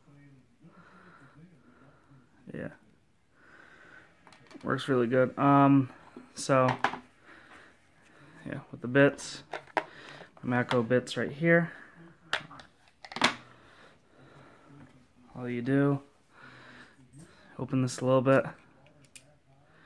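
A metal pocket tool clicks as its jaws and blades are folded open and shut.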